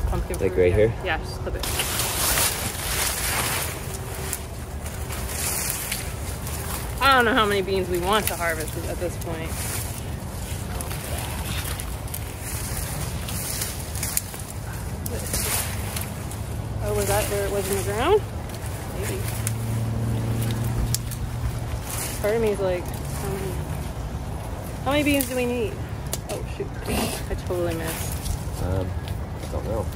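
Leafy vines rustle and snap as they are pulled.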